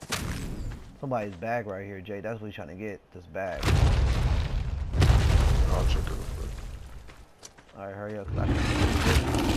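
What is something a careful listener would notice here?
A large creature lets out a growling call.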